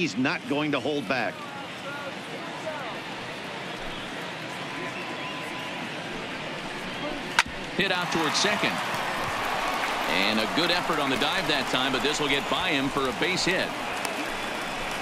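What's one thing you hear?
A stadium crowd murmurs and cheers steadily.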